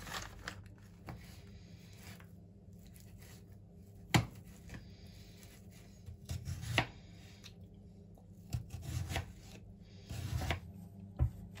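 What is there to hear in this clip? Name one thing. A knife chops on a plastic cutting board.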